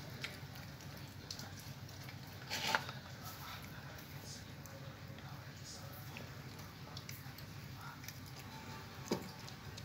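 An animal eats noisily from a bowl, with soft crunching and lapping.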